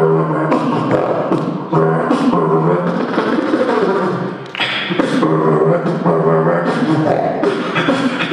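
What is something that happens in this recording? A young man beatboxes through a microphone and loudspeakers in a large hall.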